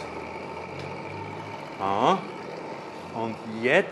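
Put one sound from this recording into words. A small engine whirs steadily.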